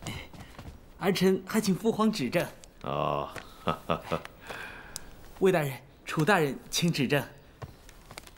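A man speaks slowly and solemnly in a large, echoing hall.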